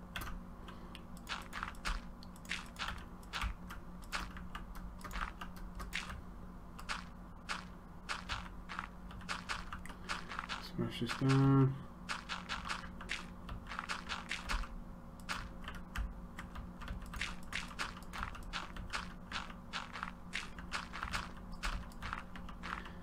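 Gravel crunches in quick, repeated scrapes as blocks are dug.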